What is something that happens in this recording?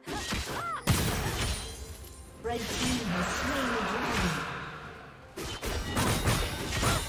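Game spell effects whoosh and crash in a fast battle.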